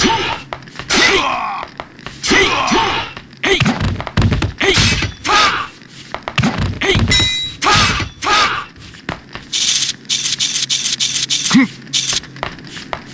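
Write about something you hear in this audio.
Sword blades swish and clash in a fight.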